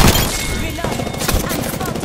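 A weapon is reloaded with metallic clicks.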